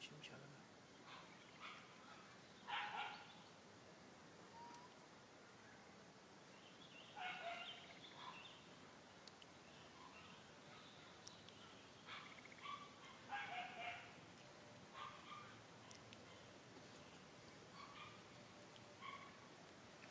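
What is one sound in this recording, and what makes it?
An infant long-tailed macaque squeals in short high bursts.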